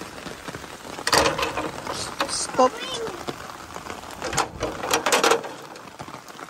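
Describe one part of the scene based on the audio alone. A metal gate latch rattles and clanks.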